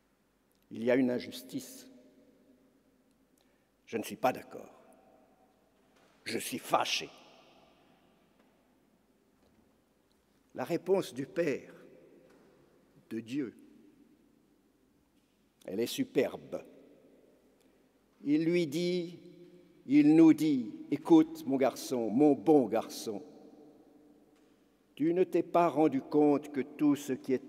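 An elderly man speaks slowly and calmly into a microphone, his voice echoing through a large hall.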